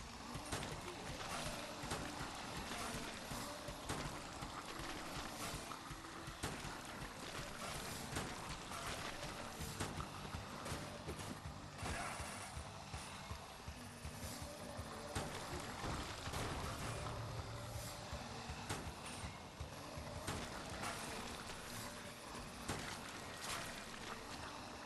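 Rapid gunfire crackles again and again.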